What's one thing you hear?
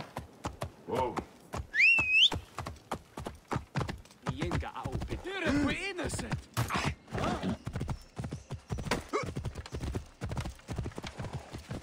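A horse gallops with hooves pounding on hard ground.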